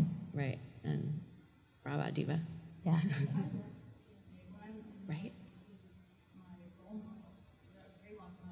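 A girl speaks softly into a microphone.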